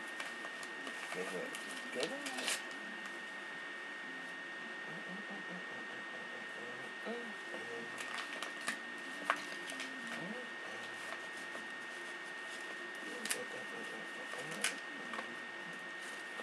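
A young man speaks quietly, close by.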